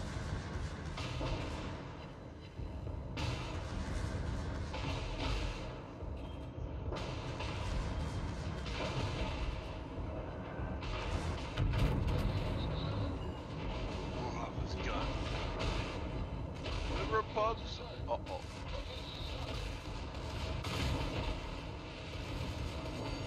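Naval guns boom with deep rumbles.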